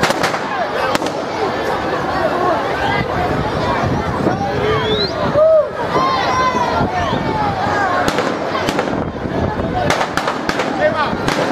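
A large crowd shouts and cheers outdoors.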